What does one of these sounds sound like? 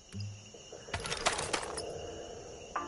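A gun clatters as it is readied.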